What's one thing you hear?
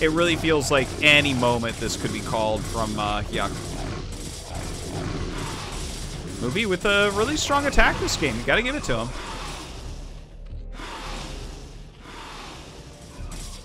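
Weapons fire and hit in a battle, in quick bursts.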